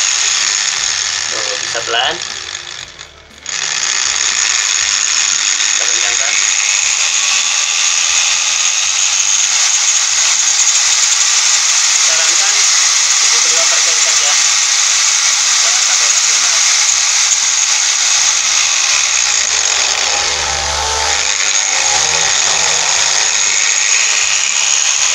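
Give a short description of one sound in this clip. An electric angle grinder whirs with a steady high whine, briefly dropping and then spinning back up.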